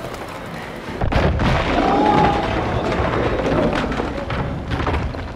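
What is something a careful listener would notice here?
Glass shatters with a loud crash.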